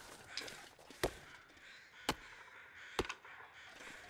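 A branch snaps as a sapling is broken off.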